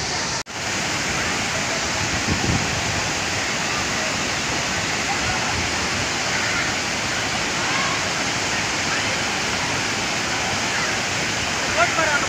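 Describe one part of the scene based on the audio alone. A waterfall roars steadily outdoors.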